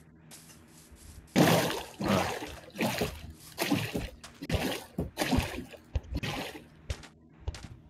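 Footsteps crunch on sand and grass.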